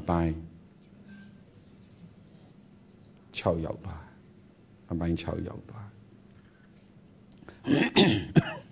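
A man speaks calmly and close to a microphone, in short phrases with pauses.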